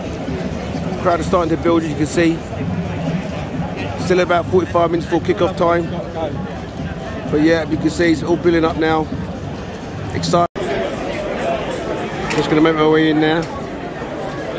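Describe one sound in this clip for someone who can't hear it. Men talk loudly nearby.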